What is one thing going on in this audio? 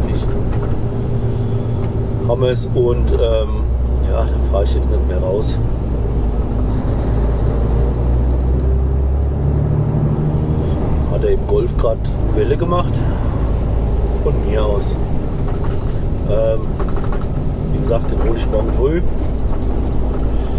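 A truck's diesel engine hums steadily from inside the cab.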